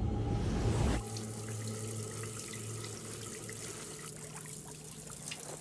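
Water runs from a tap and splashes over hands.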